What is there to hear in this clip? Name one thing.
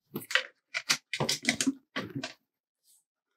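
A sheet of stickers rustles as it is handled.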